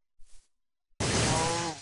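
A crackling magic zap strikes an animal.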